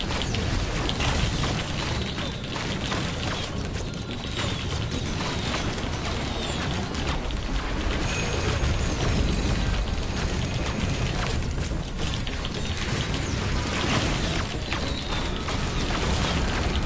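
Video game weapons fire and explosions boom.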